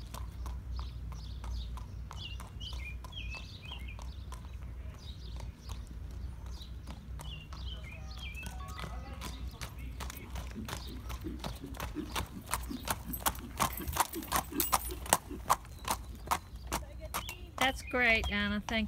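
Hooves clop steadily on pavement as a horse walks closer.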